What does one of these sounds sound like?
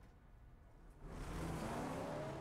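A car engine roars loudly.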